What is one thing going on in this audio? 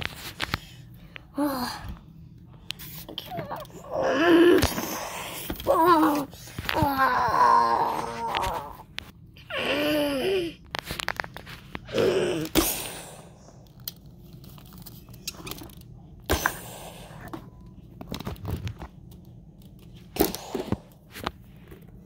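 A small plastic toy clicks and knocks as it is handled.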